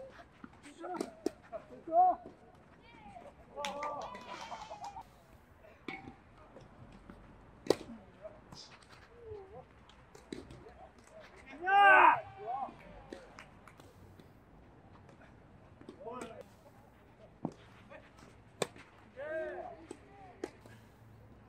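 Tennis balls are struck with rackets.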